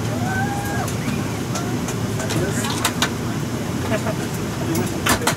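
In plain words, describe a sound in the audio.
A low, steady hum fills an aircraft cabin.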